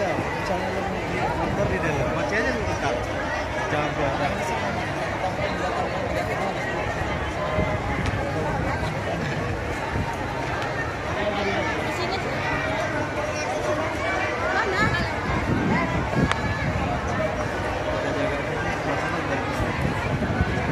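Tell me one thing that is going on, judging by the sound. A large crowd of women chatters loudly all around, outdoors.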